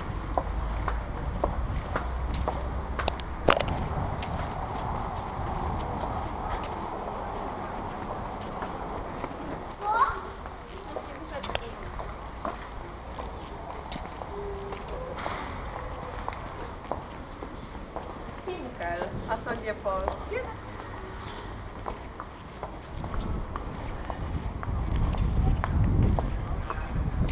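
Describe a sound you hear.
Outdoor street noise murmurs steadily.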